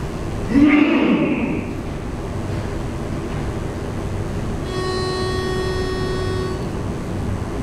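A men's choir sings together in a large hall.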